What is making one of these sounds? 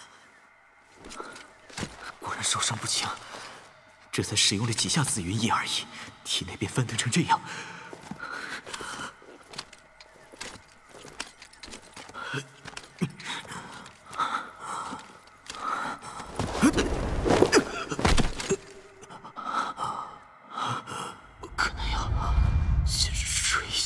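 A young man speaks calmly and quietly.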